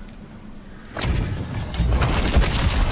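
A magical rift hums and crackles with a rushing surge.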